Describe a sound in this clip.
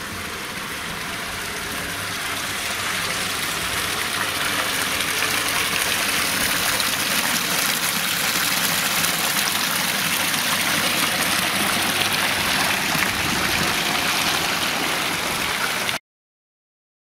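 Water splashes steadily into a fountain basin, growing louder up close.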